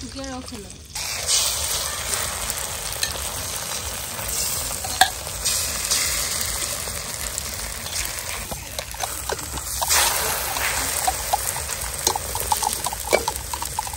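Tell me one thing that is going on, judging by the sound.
Eggs sizzle and crackle in a hot pan.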